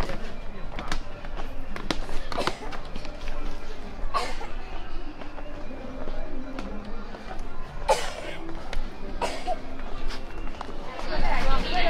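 Footsteps tap on stone steps.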